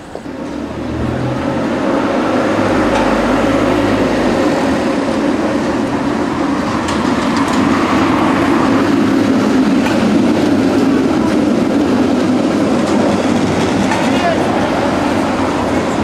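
Trams roll by on rails with a loud, steady rumble.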